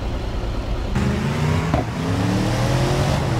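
A car engine revs as a vehicle drives along a road.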